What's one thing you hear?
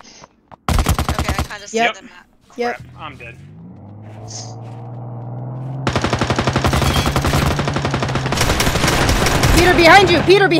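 Rapid gunfire bursts out in quick volleys.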